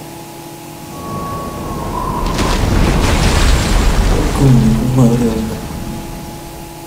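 A deep rushing roar swells as ice bursts, then fades.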